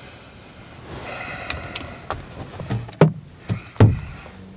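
Items rustle and clink inside a handbag.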